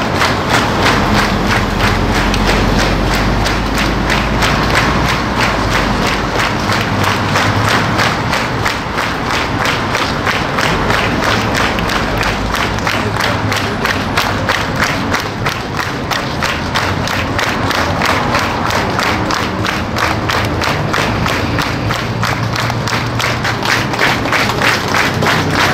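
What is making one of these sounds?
A large crowd applauds steadily outdoors.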